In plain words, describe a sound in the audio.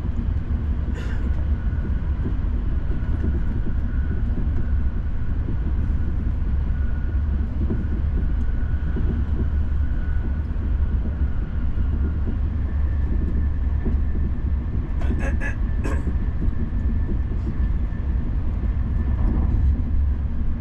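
Wheels clatter sharply over rail joints.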